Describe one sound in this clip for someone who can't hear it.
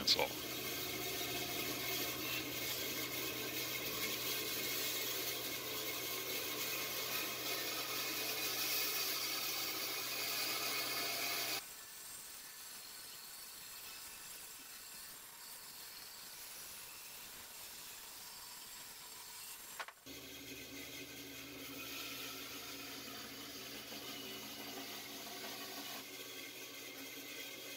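A band saw runs with a steady hum.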